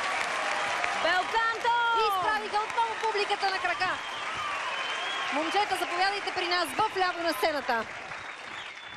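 Young women sing loudly through microphones over the crowd.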